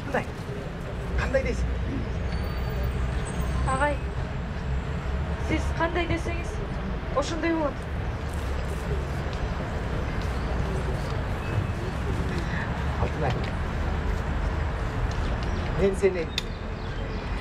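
A man speaks loudly outdoors, a few steps away.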